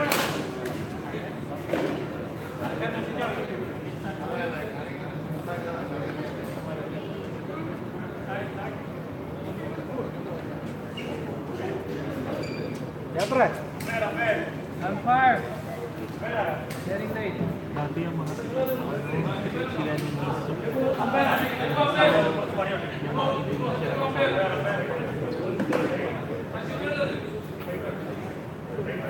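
Several men talk and call out nearby in an echoing hall.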